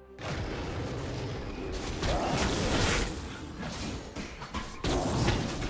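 Magic spells whoosh and crackle in a fast game battle.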